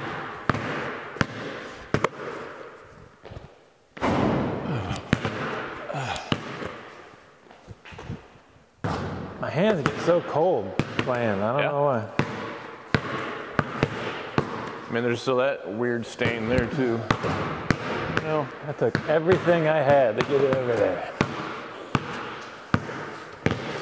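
Basketballs bounce on a hard floor with sharp thuds that echo in a large hall.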